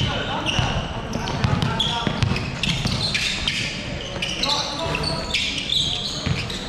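Young players call out to each other.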